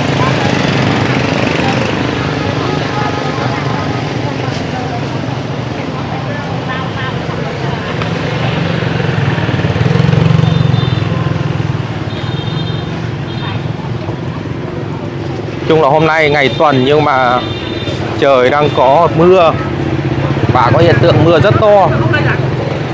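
Other motorbikes ride past nearby.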